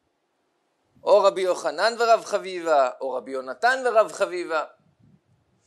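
A young man speaks calmly and expressively into a close microphone.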